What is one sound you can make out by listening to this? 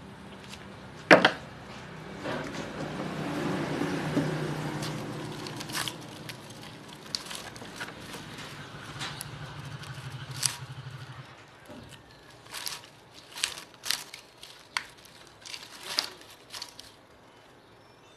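Copper wires scrape and clink against a metal core.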